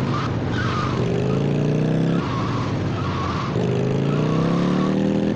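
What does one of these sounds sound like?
A chopper motorcycle engine revs up as it accelerates.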